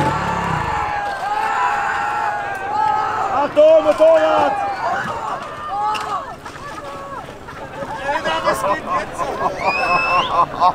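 Men shout and call out loudly nearby outdoors.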